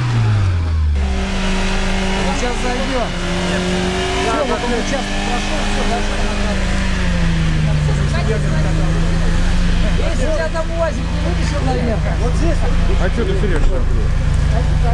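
A second vehicle's engine revs steadily while it climbs a muddy slope.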